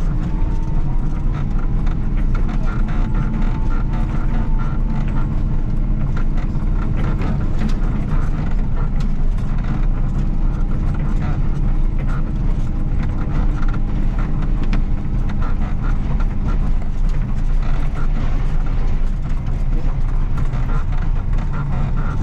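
A heavy diesel engine rumbles steadily up close.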